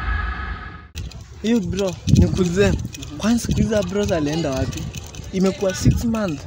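Another young man speaks with animation close by.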